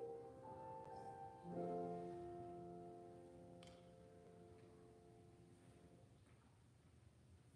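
A keyboard plays sustained chords in a large echoing hall, then fades.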